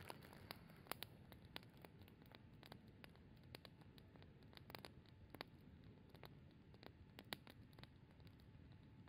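Flames roar softly and steadily.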